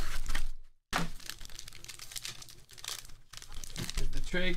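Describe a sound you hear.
A foil wrapper crinkles in someone's hands.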